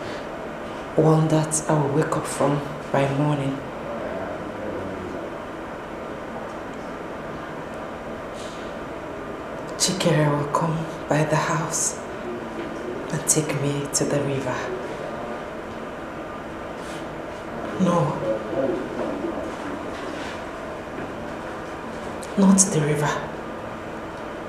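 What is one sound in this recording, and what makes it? A young woman speaks quietly in short bursts, close by.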